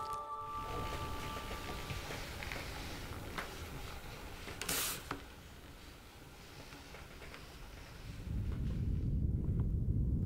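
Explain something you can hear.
A small hand tool scratches and scrapes on wood.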